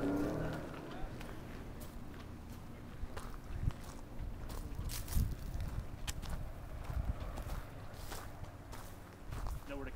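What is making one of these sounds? Footsteps crunch on dry leaves and gravel.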